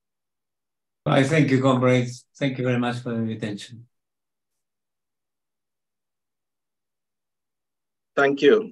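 An older man speaks calmly over an online call.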